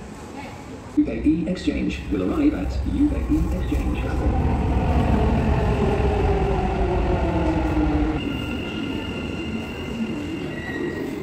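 A metro train approaches with a rising hum and squealing brakes and rolls to a stop.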